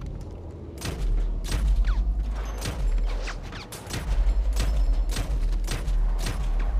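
A rifle fires in loud, repeated shots.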